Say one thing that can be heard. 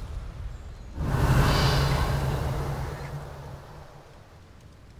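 A loud rushing whoosh of air rises and slowly fades.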